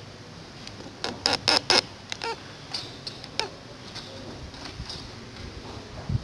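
A marker squeaks and scratches on a whiteboard.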